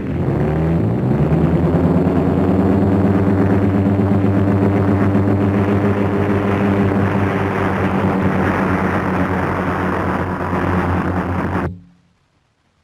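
A propeller plane's engine drones steadily, then suddenly stops.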